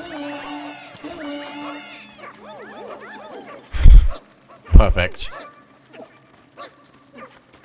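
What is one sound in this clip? Many small creatures chatter and squeak in high, chirpy voices.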